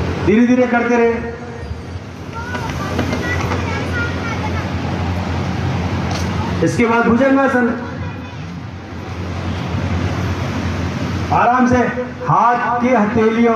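A man calls out drawn-out instructions over a loudspeaker, echoing outdoors.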